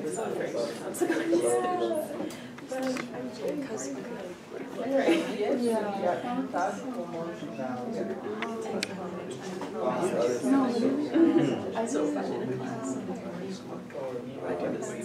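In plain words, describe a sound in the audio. A young woman speaks calmly to a small group.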